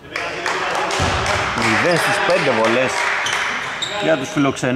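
Young men shout and call out across the echoing hall.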